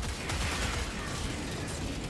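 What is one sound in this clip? Gunfire rattles from a rifle.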